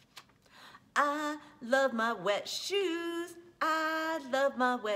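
A woman reads aloud expressively, in a sing-song voice, close by.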